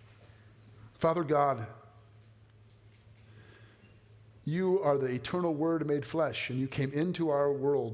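A man speaks calmly over a microphone in a large echoing hall.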